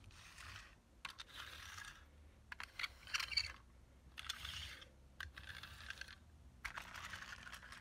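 Plastic toys clack and knock together.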